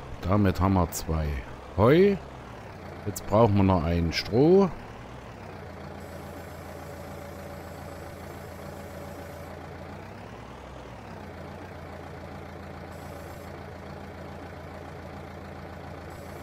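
A tractor engine rumbles steadily.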